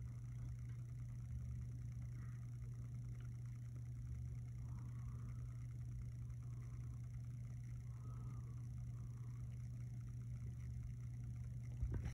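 A loudspeaker gives off a low, steady electrical hum.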